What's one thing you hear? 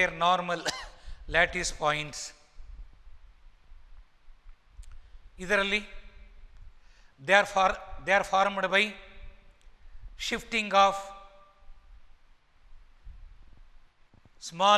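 An elderly man speaks calmly and clearly into a close microphone, pausing between phrases.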